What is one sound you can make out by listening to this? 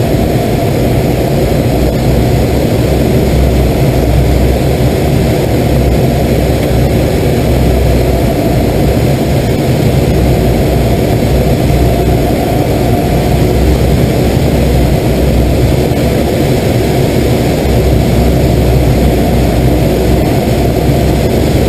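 Wind rushes loudly over the cockpit.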